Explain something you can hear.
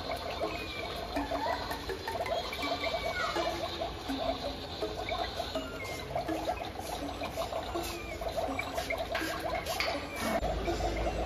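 Small plastic toys clatter and rattle as young children handle them.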